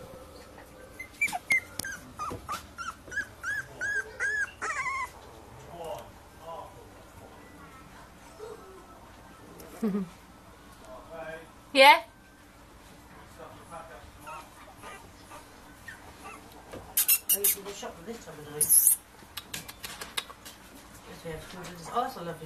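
Puppies whimper and squeak.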